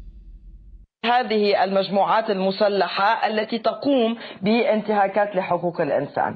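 A woman speaks with animation through a broadcast.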